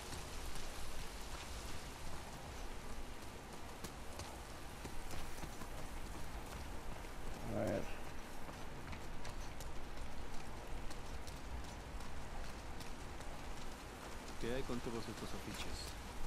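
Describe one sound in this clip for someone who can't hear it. Light rain patters steadily outdoors.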